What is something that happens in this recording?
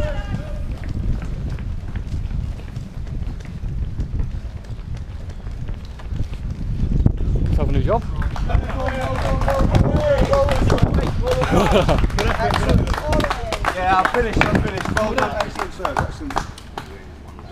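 Footsteps run on pavement close by.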